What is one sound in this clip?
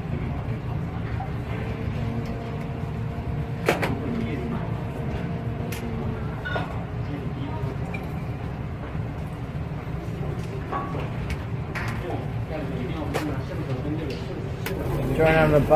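Plastic parts click and tap as they are handled.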